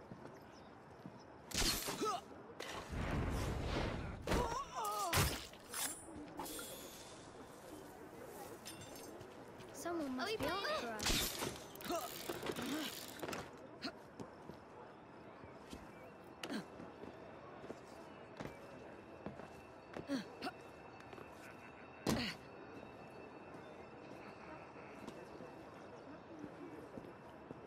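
Footsteps thud and scuff as a runner moves across rooftops.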